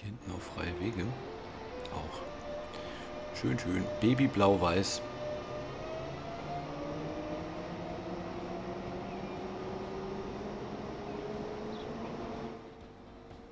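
An electric train rolls past with a rising motor whine.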